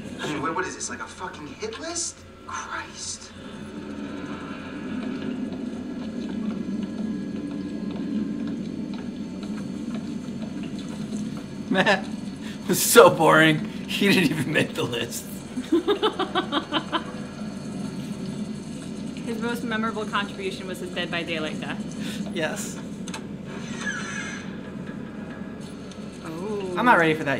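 A young woman talks and laughs close to a microphone.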